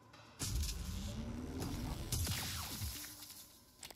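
An electric weapon zaps with a loud crackle.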